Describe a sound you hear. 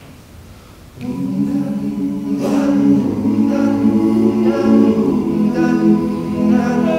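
A group of young men sings together in close harmony without instruments, echoing in a large hall.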